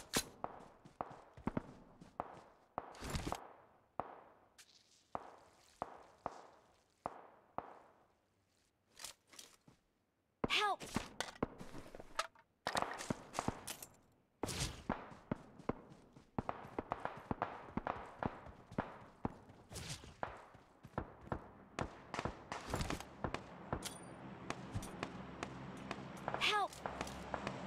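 Footsteps thud steadily across grass and dirt.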